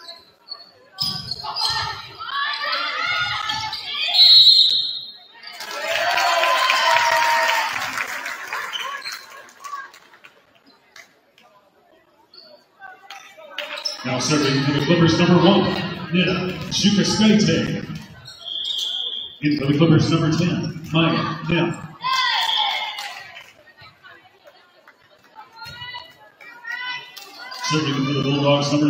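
A crowd in an echoing hall cheers and shouts loudly.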